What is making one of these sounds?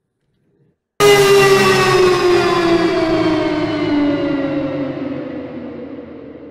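A loud ringing tone starts suddenly, then slowly falls in pitch as it fades.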